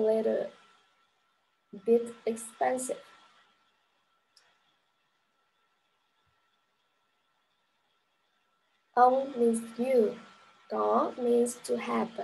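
A young woman speaks calmly through a computer microphone, pausing between phrases.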